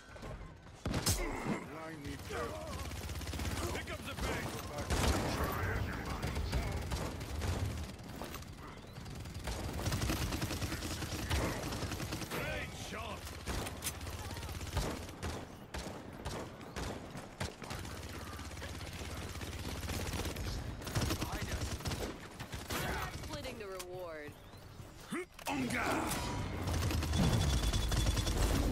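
A video game's automatic rifle fires shots.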